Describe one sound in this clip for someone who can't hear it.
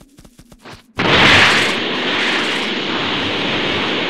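A loud energy blast rushes and roars steadily.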